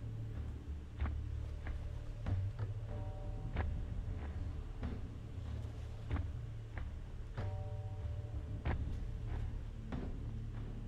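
Small plastic bricks click and clatter against each other.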